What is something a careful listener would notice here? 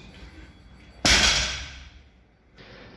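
A barbell thuds down onto a rubber floor, with weight plates clanking.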